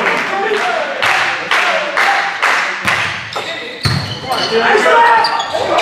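A volleyball is struck hard with a sharp smack.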